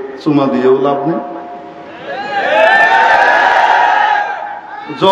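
A man speaks forcefully through a microphone and loudspeakers, his voice echoing outdoors.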